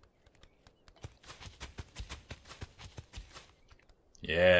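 Small webbed feet patter quickly on stone.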